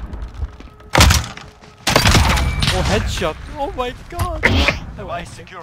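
A silenced pistol fires sharp shots in quick succession.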